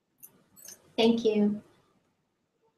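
A woman speaks a few soft, calm words close to a microphone.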